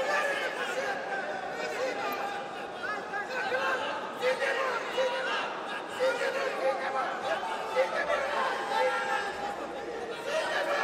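A large crowd cheers and shouts throughout a big echoing arena.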